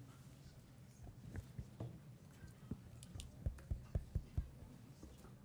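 A walking cane taps on a hard floor.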